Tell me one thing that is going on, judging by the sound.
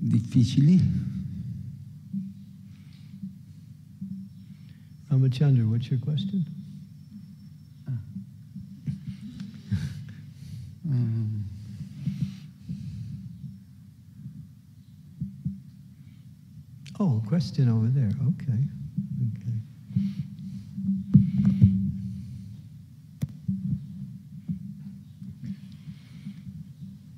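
A harmonium plays a low steady drone.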